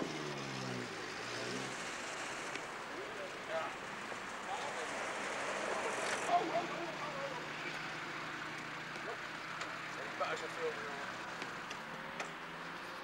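A small car engine hums as the car drives slowly past.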